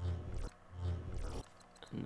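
A game plays a shimmering whoosh as a card is revealed.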